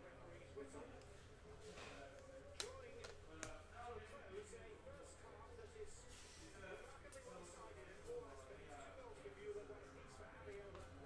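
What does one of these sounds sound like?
Trading cards flick and rustle as they are shuffled.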